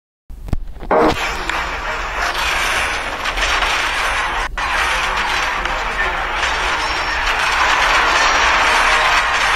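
A chaotic game battle roars with a steady din of clashing noise.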